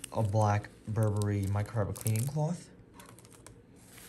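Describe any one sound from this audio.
Plastic wrapping crinkles.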